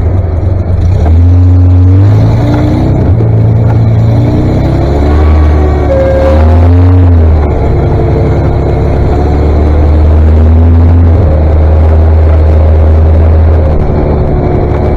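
A tractor engine revs up and down as a tractor drives close by.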